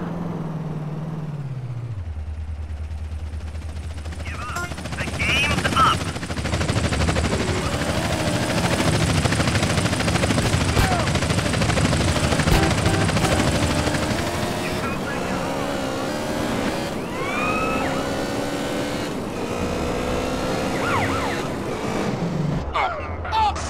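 A motorbike engine hums and revs steadily.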